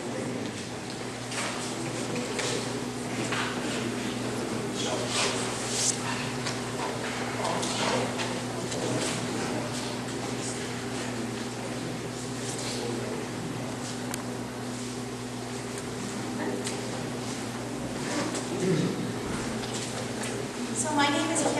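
A woman speaks calmly through a microphone and loudspeaker in a large echoing room.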